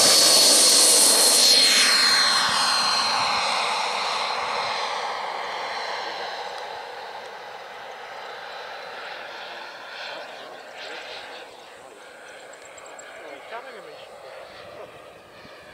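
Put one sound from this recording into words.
A model jet's turbine engine whines loudly as it takes off, then fades as it flies away.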